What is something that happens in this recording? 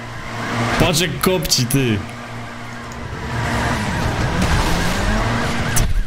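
Tyres screech while drifting.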